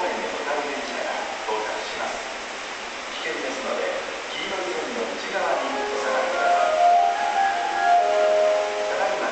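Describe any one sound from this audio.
An electric train rumbles along the rails, its motors whining as it approaches.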